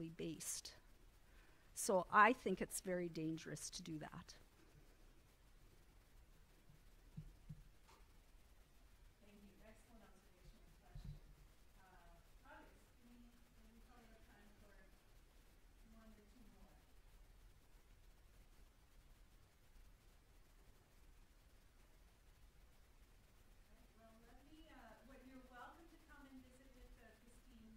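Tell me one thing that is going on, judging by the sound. A woman speaks calmly into a microphone, with long pauses.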